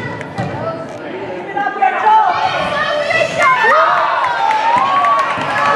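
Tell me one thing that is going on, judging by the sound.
Young girls shout and call out in a large echoing gym.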